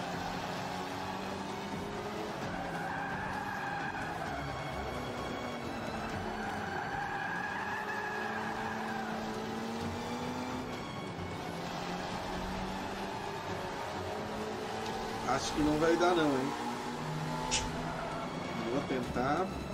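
A racing car engine roars and revs steadily, rising and falling in pitch.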